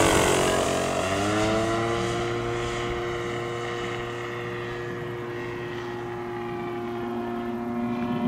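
A propeller plane's engine drones steadily into the distance.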